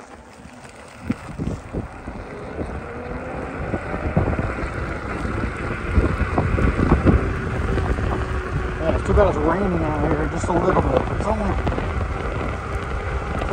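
Wind rumbles loudly against the microphone while moving along the road.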